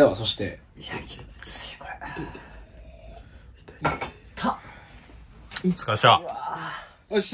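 A young man groans and cries out in pain close by.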